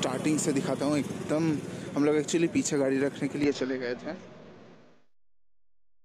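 People in a crowd chatter outdoors.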